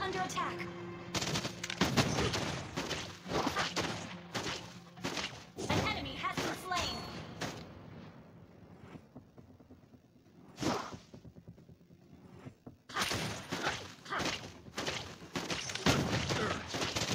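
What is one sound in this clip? Game sound effects of skills and hits crackle and boom in bursts.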